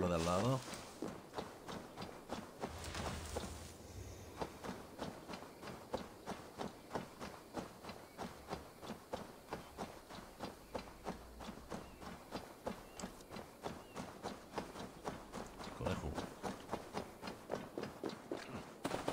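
Footsteps run quickly and steadily through grass.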